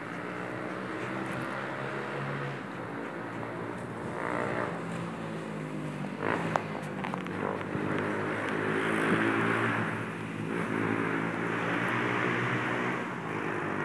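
A dog pants heavily close by.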